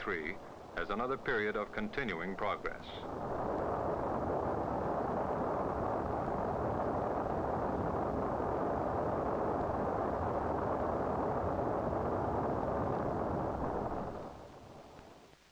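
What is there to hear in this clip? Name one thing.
A rocket engine roars steadily during liftoff.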